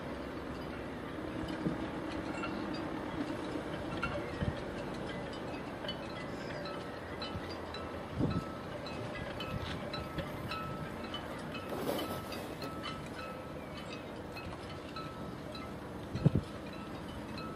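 Wind blows outdoors.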